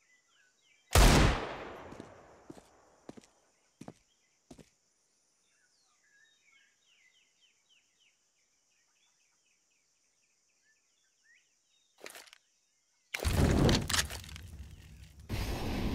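A rifle fires sharp, echoing shots.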